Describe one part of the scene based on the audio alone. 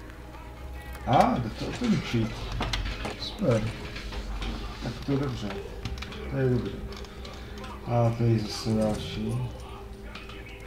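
A chain rattles against a metal lock.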